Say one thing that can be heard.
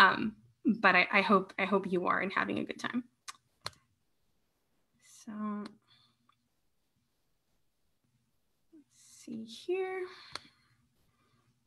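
A woman talks and laughs softly over an online call.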